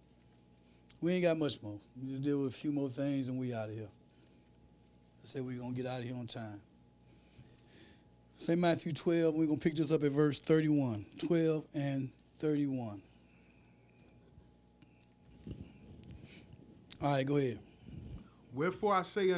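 A man reads aloud steadily into a microphone, with pauses between phrases.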